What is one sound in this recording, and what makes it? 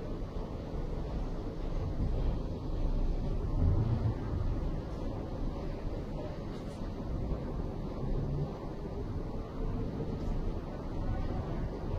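Hands rub and knead bare skin softly.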